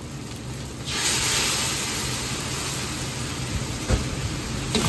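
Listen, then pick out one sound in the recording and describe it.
Sauce sizzles loudly as it hits a hot wok.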